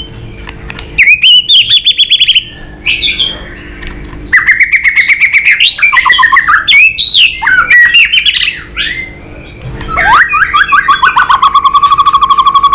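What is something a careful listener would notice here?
A songbird sings loudly and close by in rapid, varied whistling phrases and trills.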